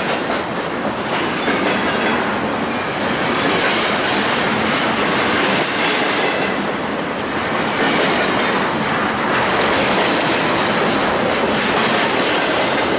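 A long freight train rumbles past close by, its wheels clattering and squealing on the rails.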